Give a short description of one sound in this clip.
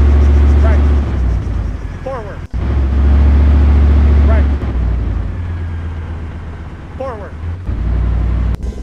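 A tank engine rumbles low and steady, rising and falling in loudness.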